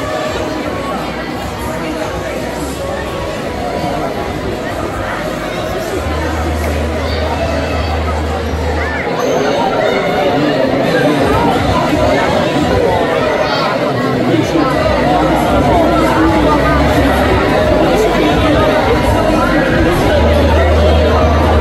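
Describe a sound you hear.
A crowd of people chatter and call out in a large echoing hall.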